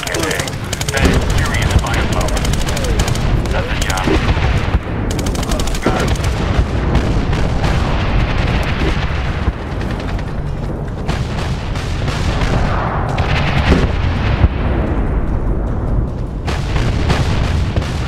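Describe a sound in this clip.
Explosions boom nearby with a deep rumble.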